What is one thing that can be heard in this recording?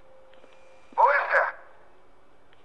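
A man speaks briefly in a low voice.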